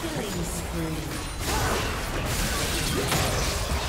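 Magic spells crackle and burst as game characters fight.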